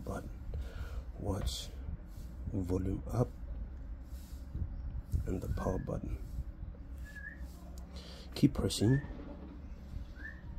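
A phone rubs and taps against hands as it is turned over.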